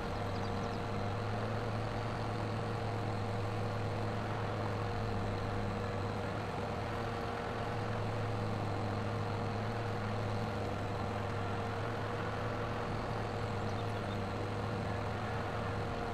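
A mower whirs as it cuts grass.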